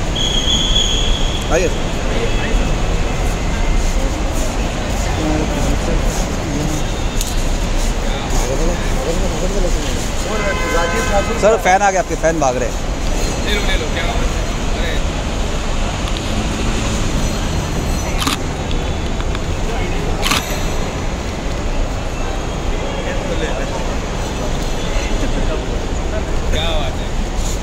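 Voices murmur and echo around a large open hall.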